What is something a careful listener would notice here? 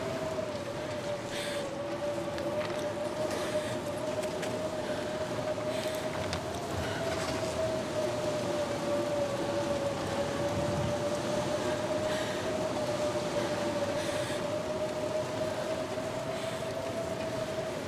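A strong blizzard wind howls steadily.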